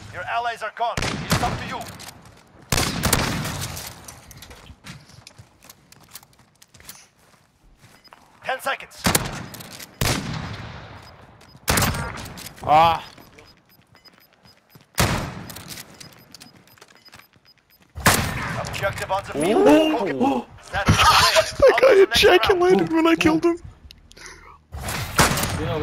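A shotgun fires loud, sharp blasts now and then.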